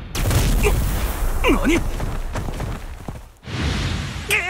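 A heavy rushing impact booms and roars.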